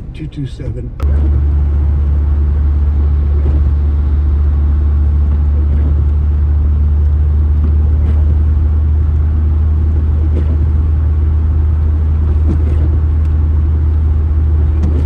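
Tyres rumble steadily and low on a wet road.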